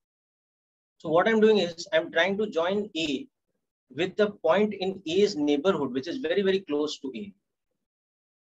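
A young man explains calmly over a microphone.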